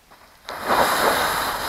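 A small charge goes off with a sharp bang.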